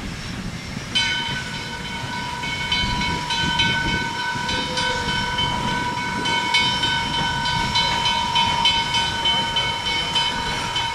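A steam locomotive whistle blows a long, steady chord in the distance.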